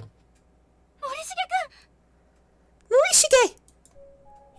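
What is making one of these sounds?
A young woman speaks into a headset microphone.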